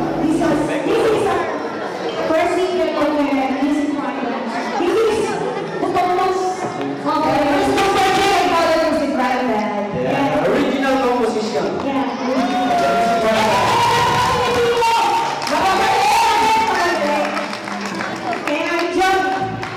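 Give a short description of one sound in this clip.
A young woman sings into a microphone through loudspeakers.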